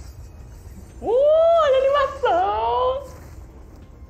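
A young girl laughs excitedly close by.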